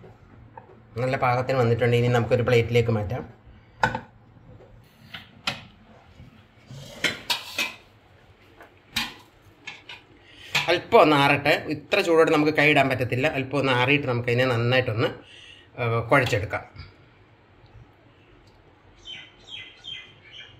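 A spoon scrapes and taps against a metal pan.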